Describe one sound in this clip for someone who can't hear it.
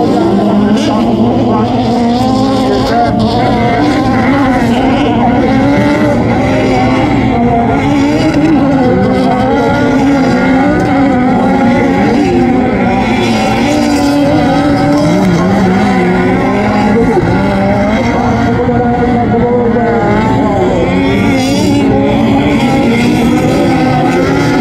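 Race car engines roar and rev on a dirt track.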